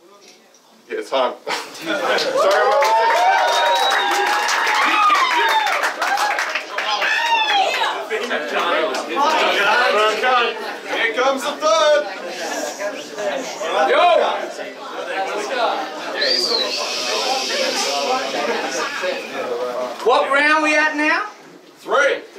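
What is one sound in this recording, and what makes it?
Several young men talk and shout over each other with animation.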